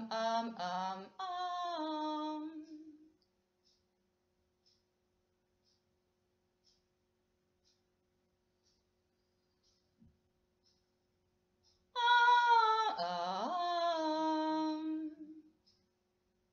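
A young woman sings long, held notes up close.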